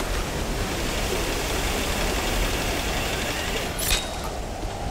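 Water rushes steadily down a rocky cliff.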